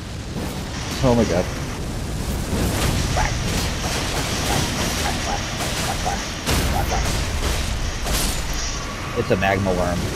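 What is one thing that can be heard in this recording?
Metal weapons clash and strike with sharp blows.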